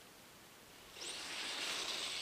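Toy car tyres hiss over snow.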